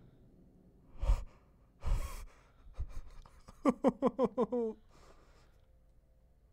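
A young man speaks close to a microphone, sounding startled.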